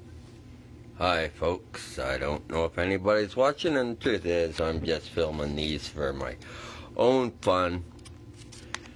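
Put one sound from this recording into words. An older man talks calmly close to the microphone.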